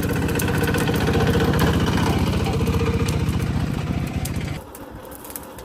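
A tractor engine chugs loudly nearby.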